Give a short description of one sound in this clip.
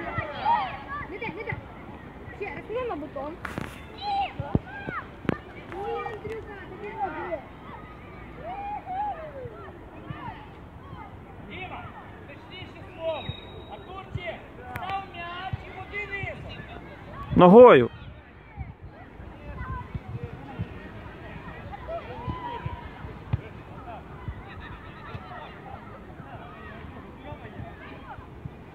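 Children shout and call out in the distance across an open outdoor field.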